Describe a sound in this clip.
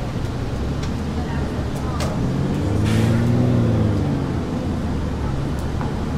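A bus engine revs up as the bus pulls away.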